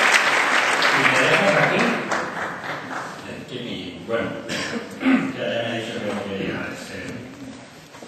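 An older man speaks calmly through a microphone in an echoing hall.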